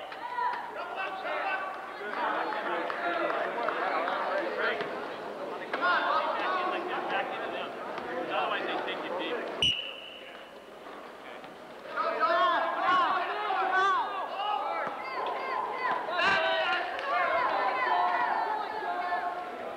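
Several young men talk and call out in a large echoing hall.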